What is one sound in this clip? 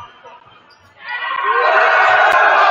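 A team of young women cheers loudly together.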